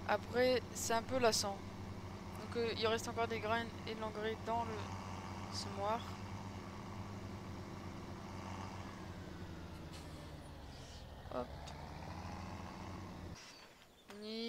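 A tractor engine idles with a steady low rumble.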